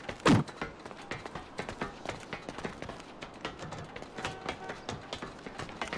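Footsteps tap on hard pavement.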